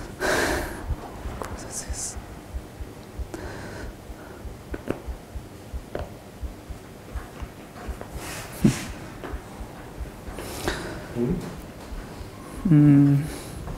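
A man speaks calmly and haltingly.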